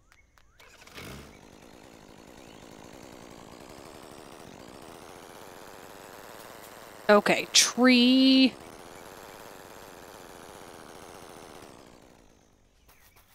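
A small motorbike engine hums steadily, then fades out.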